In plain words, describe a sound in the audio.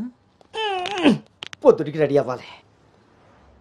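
A middle-aged man cries out in a strained, wailing voice.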